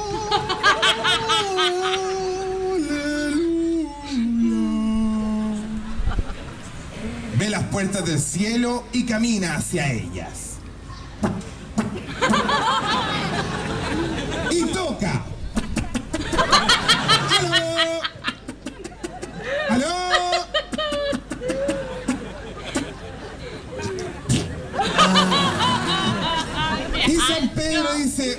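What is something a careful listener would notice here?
A young woman laughs loudly through a microphone.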